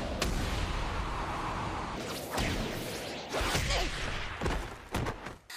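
A young boy grunts in pain.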